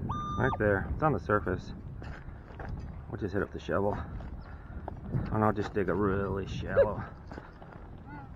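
A small shovel scrapes and digs into soil.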